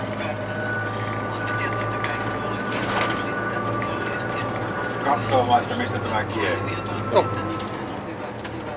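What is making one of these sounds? A bus engine hums steadily from inside the cabin.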